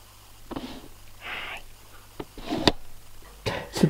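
A young man speaks softly and close by.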